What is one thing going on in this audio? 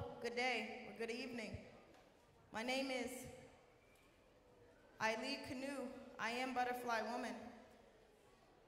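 A young woman sings in short phrases into a microphone.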